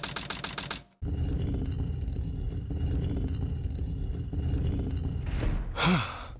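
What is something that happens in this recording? A heavy stone door rumbles and grinds as it slides open.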